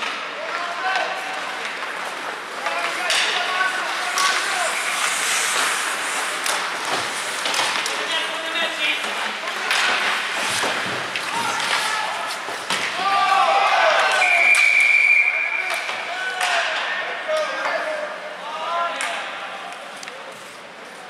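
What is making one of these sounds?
Hockey sticks clack against the puck and each other.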